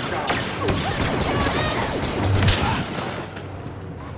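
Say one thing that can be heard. A lightsaber hums and swings.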